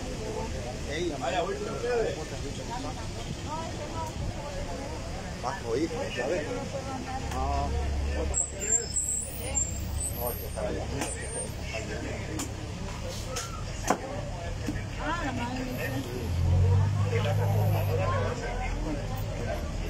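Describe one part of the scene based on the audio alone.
People talk in the street nearby.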